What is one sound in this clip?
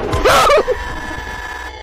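A young man screams loudly into a microphone.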